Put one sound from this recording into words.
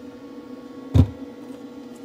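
A hand knocks against a plastic handle with a sharp thud.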